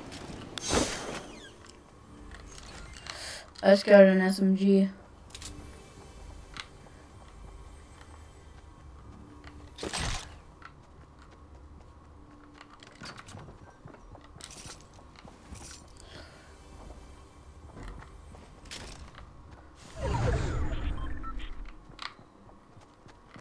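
Footsteps patter quickly on wooden floors.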